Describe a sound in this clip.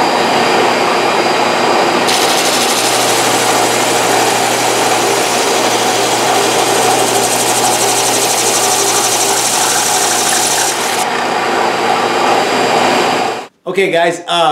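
A drum sander runs with a loud steady whir.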